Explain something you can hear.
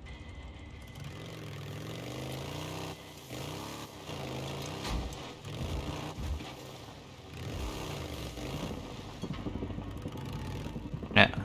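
A motorcycle engine rumbles and revs up and down as it rides.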